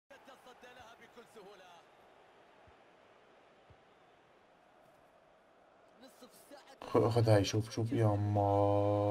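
A young man talks close to a microphone, with animation.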